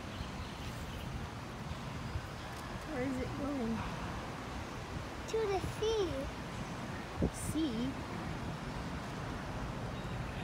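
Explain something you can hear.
Water laps gently against a sloping bank.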